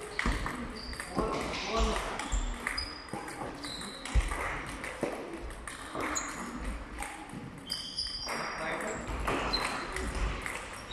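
A ping-pong ball clicks back and forth between paddles and table in a rally.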